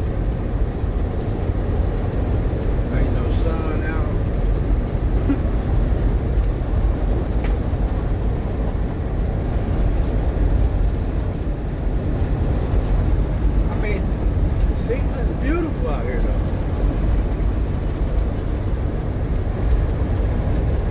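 A vehicle's engine rumbles steadily.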